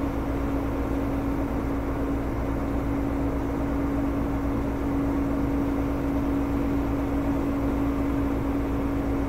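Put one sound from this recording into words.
A truck's diesel engine idles with a steady low rumble and hum.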